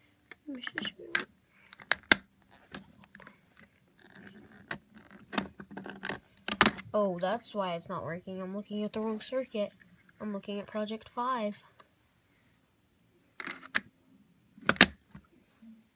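Plastic parts click as they are snapped together.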